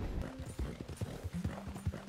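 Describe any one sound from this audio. A horse's hooves pound along a dirt track.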